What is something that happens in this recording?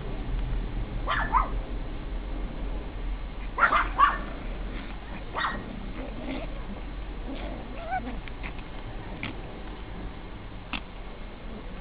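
Small dogs growl and yap playfully as they wrestle.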